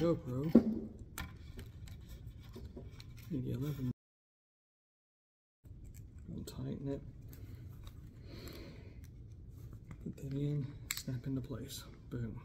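Plastic clicks and knocks as a small device is handled and clipped on.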